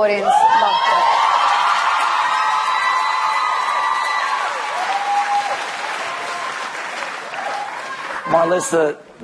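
An audience cheers and applauds loudly.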